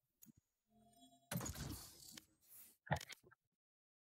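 A mouse button clicks once.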